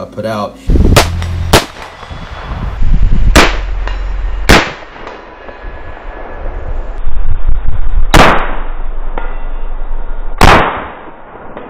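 Rifle shots crack loudly outdoors and echo.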